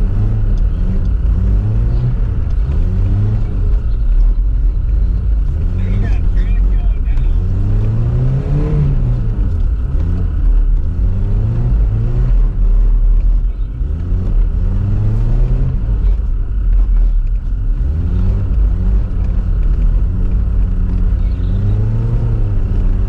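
Tyres spin and crunch over packed snow.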